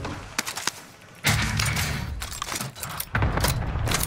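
An ammunition case clicks open and rattles.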